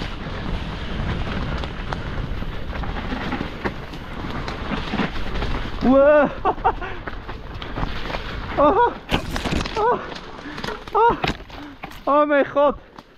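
Bicycle tyres roll and crunch over a trail.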